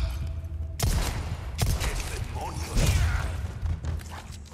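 A handgun fires several sharp shots in an enclosed room.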